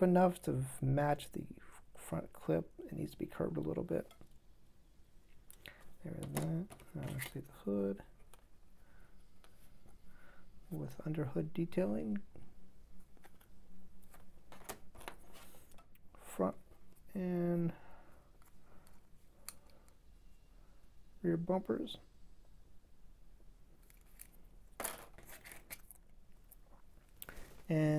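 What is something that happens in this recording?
Small plastic parts click and tap softly as hands handle them.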